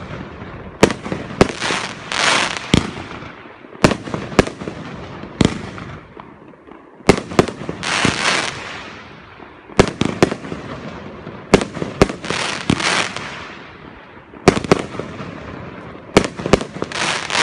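Firework sparks crackle and hiss after each burst.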